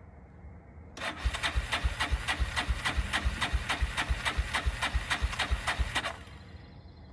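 A quad bike's engine cranks over rhythmically without starting.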